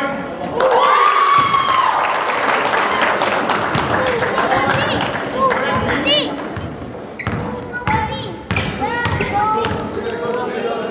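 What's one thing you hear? Men shout and call out in a large echoing gym.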